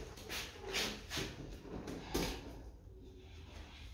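Rubber balloons squeak and rub as they are pressed against a wall.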